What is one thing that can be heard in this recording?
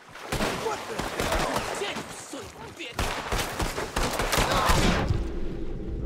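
A horse gallops with hooves thudding on dirt.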